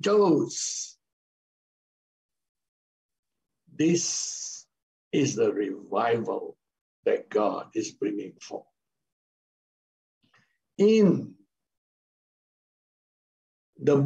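A middle-aged man speaks calmly with pauses, heard through an online call.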